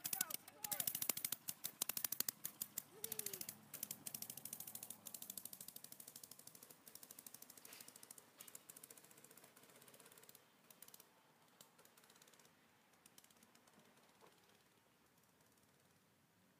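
A small engine rattles loudly nearby, then putters away into the distance and fades.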